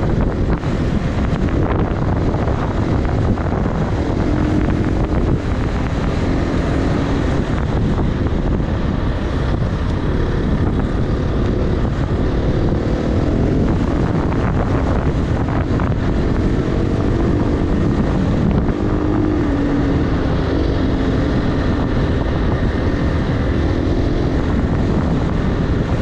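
A dirt bike engine roars steadily close by, rising and falling as it revs.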